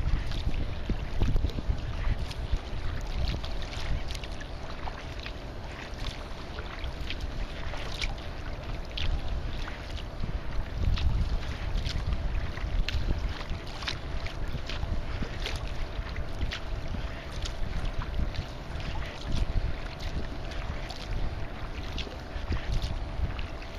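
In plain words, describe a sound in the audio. Wind blows hard and gusts across the open water.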